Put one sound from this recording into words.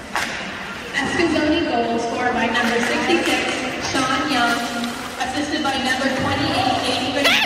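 A crowd of spectators talks and shouts nearby.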